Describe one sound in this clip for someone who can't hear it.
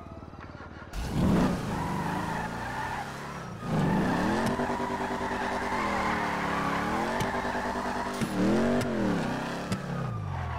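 A car engine revs loudly, rising and falling in pitch.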